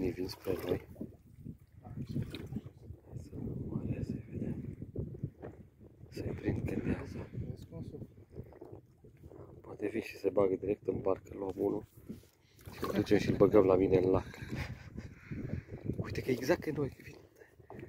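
Small waves lap and splash against a boat.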